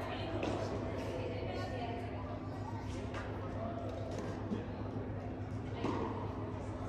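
Tennis balls pop off rackets in the distance, echoing around a large hall.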